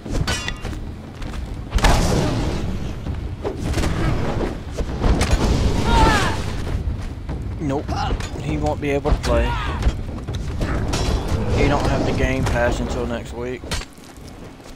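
Weapons clash and thud in a fierce fight.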